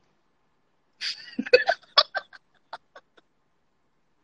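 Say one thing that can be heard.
A young woman laughs heartily over an online call.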